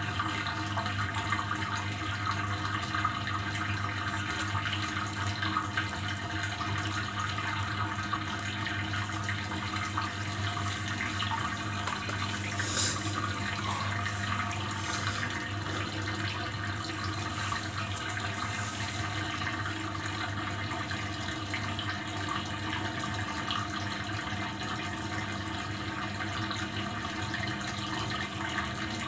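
Wet laundry sloshes and tumbles in a washing machine drum.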